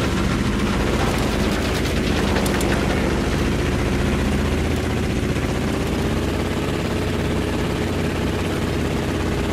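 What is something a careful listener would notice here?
A propeller plane's engine drones steadily at close range.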